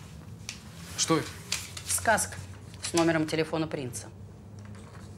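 A middle-aged woman speaks calmly and firmly close by.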